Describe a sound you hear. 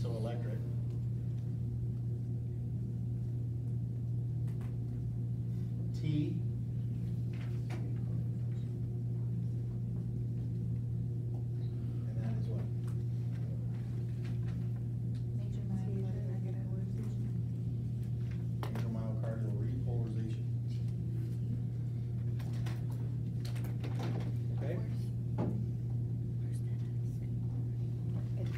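A middle-aged man lectures in a room, speaking calmly and a little distant.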